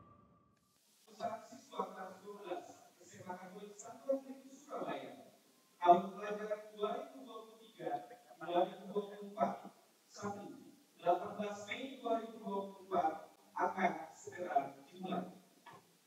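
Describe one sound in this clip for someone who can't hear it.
A man speaks calmly into a microphone, heard through loudspeakers.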